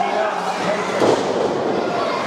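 A wrestler crashes down heavily onto the ring mat.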